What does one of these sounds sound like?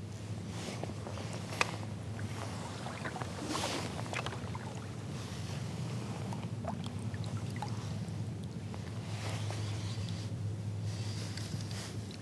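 A paddle dips and swishes through water.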